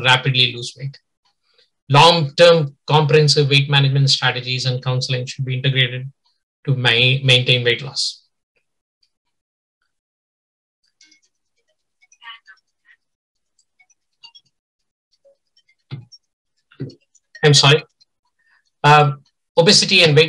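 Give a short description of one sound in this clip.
A man speaks calmly into a microphone over an online call, with pauses.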